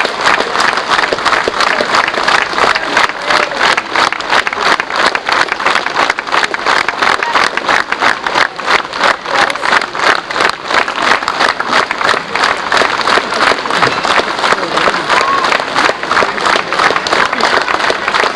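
A large crowd outdoors claps along in a quick, steady rhythm.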